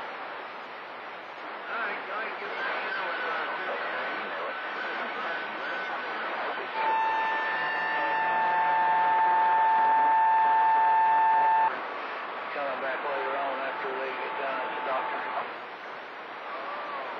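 A radio receiver hisses and crackles with static.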